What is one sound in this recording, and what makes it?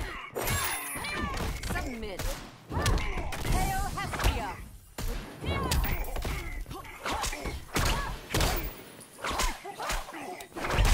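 Heavy punches and kicks land with loud, sharp thuds.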